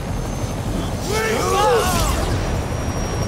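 Electricity crackles and zaps sharply.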